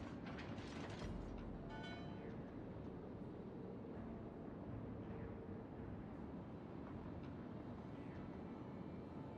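A large ship's engine rumbles low and steady.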